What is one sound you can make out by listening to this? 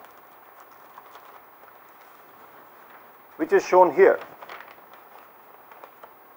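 Paper rustles and crinkles in someone's hands.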